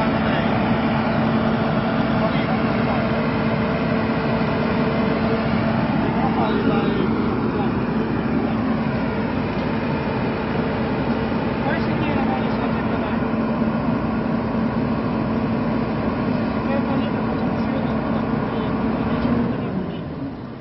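A truck's engine runs with a steady drone, then stops.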